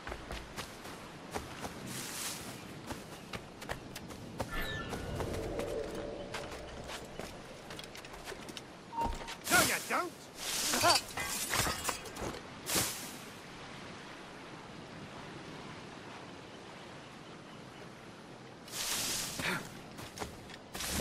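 Footsteps rustle quickly through grass and leaves.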